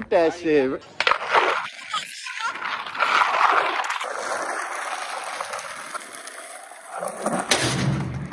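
Skateboard wheels roll roughly over asphalt.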